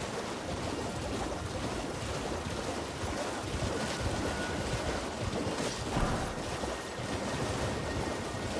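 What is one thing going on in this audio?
A horse gallops through shallow water, hooves splashing.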